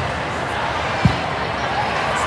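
A volleyball is struck with a sharp thud.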